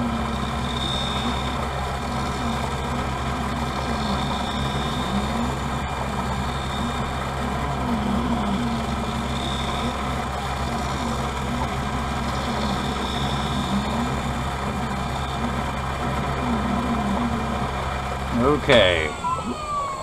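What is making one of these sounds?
A machine hums and grinds steadily.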